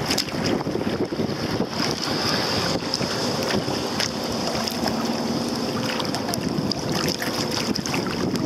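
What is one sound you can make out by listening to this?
A kayak paddle dips and splashes in the water.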